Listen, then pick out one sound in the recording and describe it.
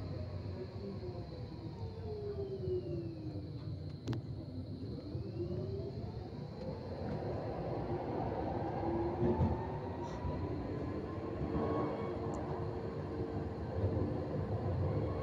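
A tram rumbles steadily along its rails from inside the car.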